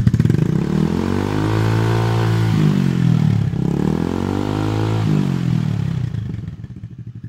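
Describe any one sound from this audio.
A motorcycle engine revs loudly through its exhaust, rising and falling twice.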